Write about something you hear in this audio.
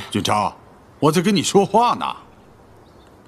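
An elderly man speaks sharply and loudly, close by.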